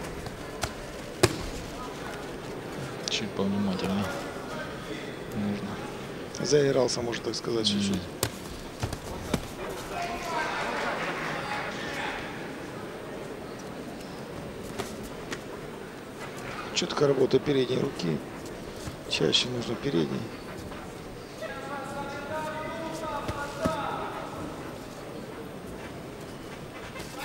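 Gloved punches thud against a boxer's body.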